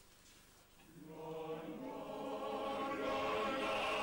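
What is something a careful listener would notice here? A men's choir begins singing together in a room.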